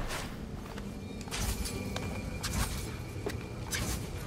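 A character's footsteps and landings thud on stone.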